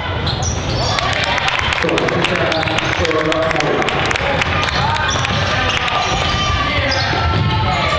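Sneakers squeak on a wooden floor as players run.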